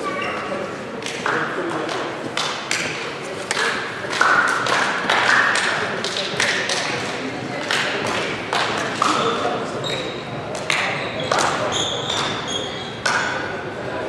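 Players slap hands one after another in an echoing hall.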